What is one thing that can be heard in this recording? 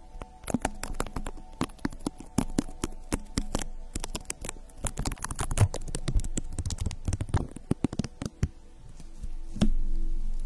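Fingers rub and scratch against a microphone's cover.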